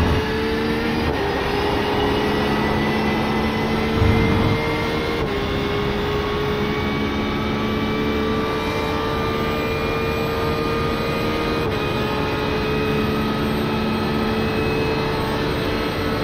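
A race car engine roars at high speed, rising in pitch and dropping briefly at each gear change.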